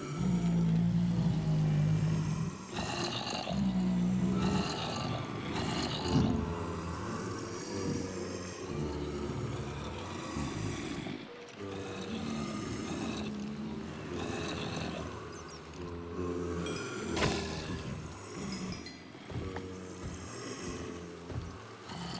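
Game zombies groan and grunt.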